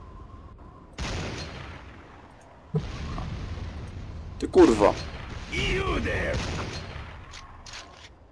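A rifle fires loud single shots that boom and echo away.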